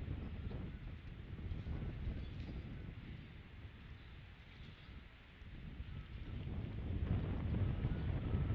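A large bird shifts in a nest of sticks and straw, rustling the straw.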